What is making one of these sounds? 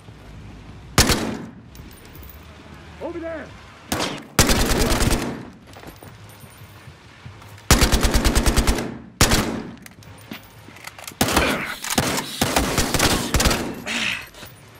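A rifle fires in rapid bursts, echoing indoors.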